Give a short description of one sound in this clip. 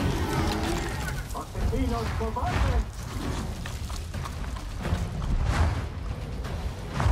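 Fire roars and crackles all around.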